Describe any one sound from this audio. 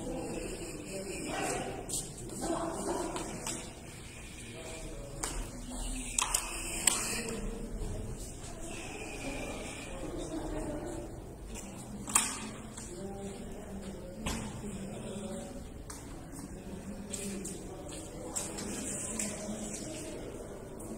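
Several voices murmur and chatter nearby in an echoing hall.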